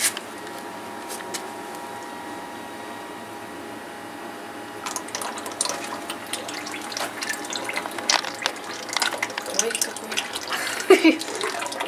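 Oil trickles and splashes into a metal bucket.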